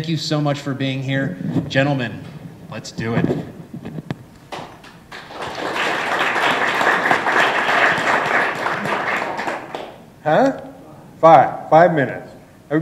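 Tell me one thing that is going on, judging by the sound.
An elderly man speaks loudly to a room, with pauses.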